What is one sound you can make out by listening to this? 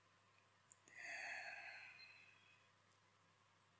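A young woman makes a short vocal sound close by.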